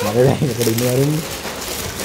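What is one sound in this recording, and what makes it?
A plastic bag rustles as it is opened.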